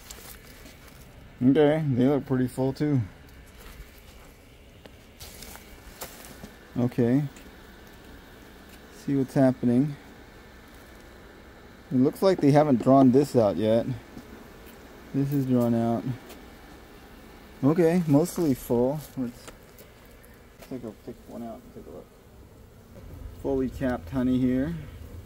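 Honeybees buzz softly close by.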